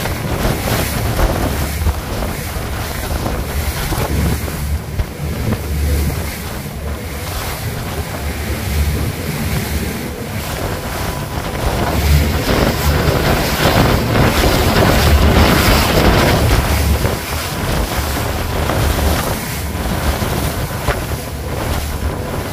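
Spray from a fast boat's wake crashes and hisses against the hull.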